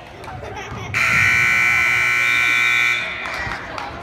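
A loud buzzer sounds steadily for about two seconds.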